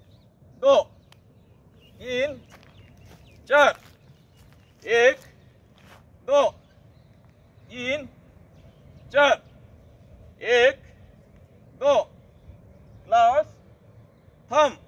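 A man calls out short counts loudly at a steady pace, outdoors.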